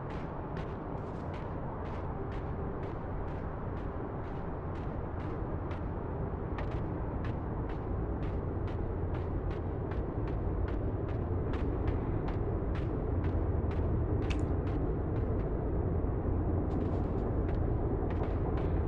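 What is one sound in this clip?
Small footsteps patter steadily at a quick pace.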